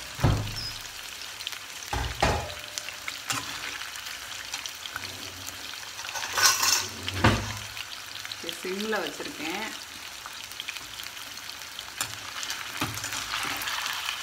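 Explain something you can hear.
Food sizzles in hot oil in a pan.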